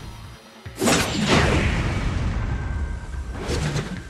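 A chainsaw blade whirs as it swings.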